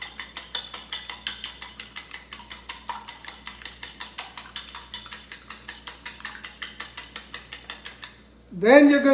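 A fork whisks eggs briskly in a bowl with fast, steady clicks.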